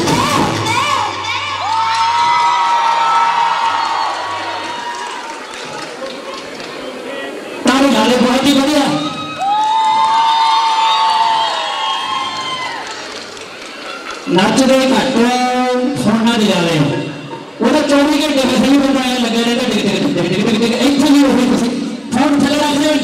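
A drum kit plays a beat.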